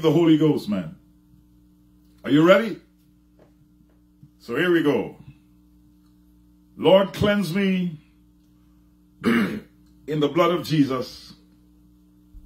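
An older man speaks slowly and deliberately into a close microphone, with long pauses between phrases.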